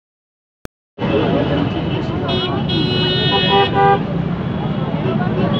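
A dense crowd chatters all around outdoors.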